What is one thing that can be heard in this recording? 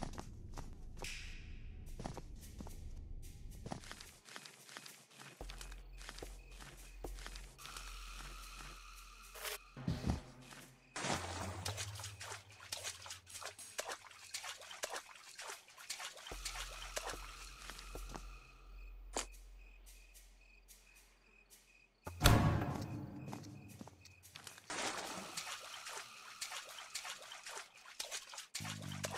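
Footsteps thud on a hard floor at a walking pace.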